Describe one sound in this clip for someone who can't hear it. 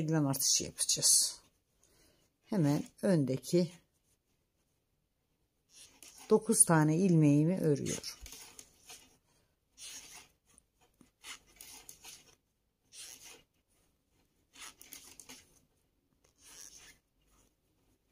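Metal knitting needles click and scrape softly against each other.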